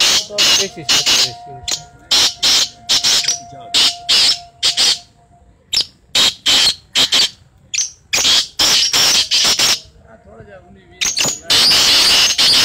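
Birds sing loudly in short, rapid bursts of shrill chirps.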